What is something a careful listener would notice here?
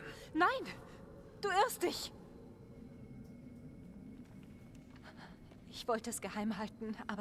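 A young woman speaks with emotion, close by.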